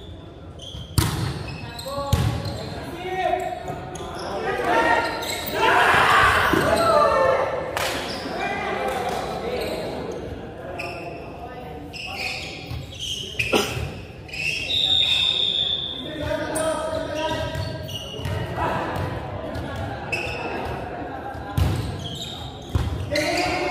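A volleyball is struck with sharp slaps that echo around a large hall.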